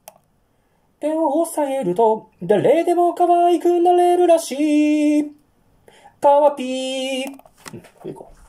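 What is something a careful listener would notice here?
A man sings in a high, steady voice close to a microphone.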